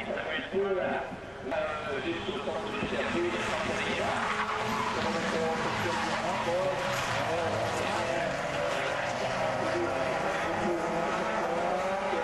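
Spectators chatter in a crowd outdoors.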